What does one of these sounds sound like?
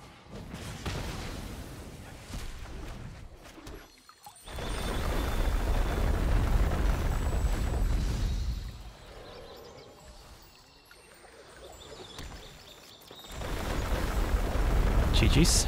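Magical whooshing and shimmering effects sound as cards are played.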